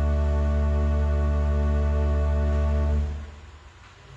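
A pipe organ plays a loud sustained chord that stops suddenly.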